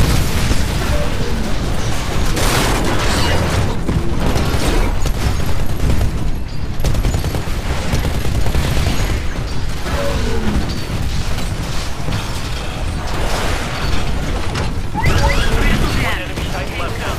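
Heavy gunfire rattles in rapid bursts.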